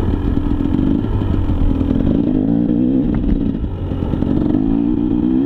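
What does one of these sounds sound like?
A dirt bike engine revs and buzzes loudly up close.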